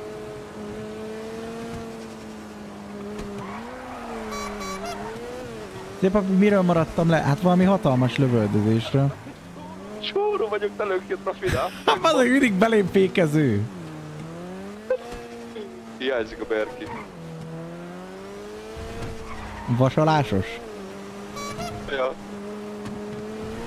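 A car engine hums steadily, rising and falling in pitch as it speeds up and slows.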